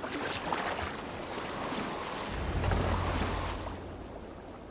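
Water laps gently against a rowing boat.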